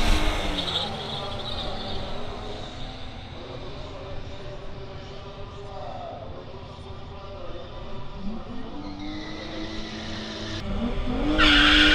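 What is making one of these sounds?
A car engine fades into the distance.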